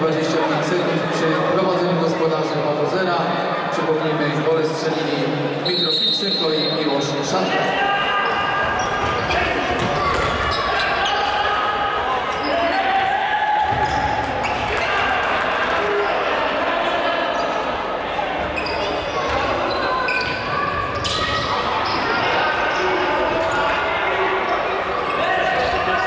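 A ball thuds off players' feet.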